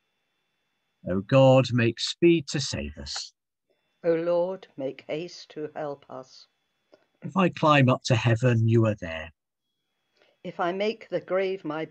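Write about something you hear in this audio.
A woman reads aloud slowly over an online call.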